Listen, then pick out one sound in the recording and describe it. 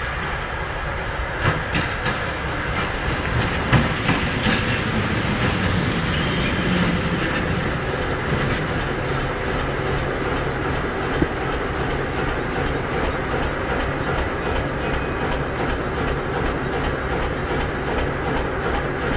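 A diesel shunting locomotive engine rumbles.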